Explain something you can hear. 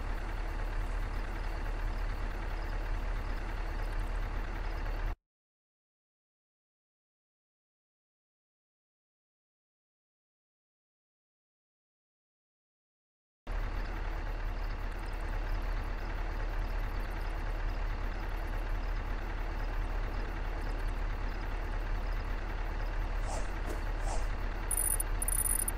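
A van engine idles with a low steady rumble.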